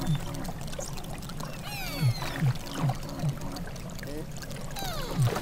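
Pilot whales whistle and squeal underwater.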